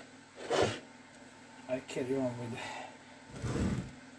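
A cloth rag rustles as it is wiped over metal.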